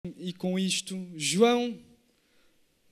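A man sings into a microphone in a large echoing hall.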